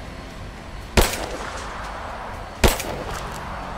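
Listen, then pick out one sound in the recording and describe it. A rifle fires loud single shots that echo among trees.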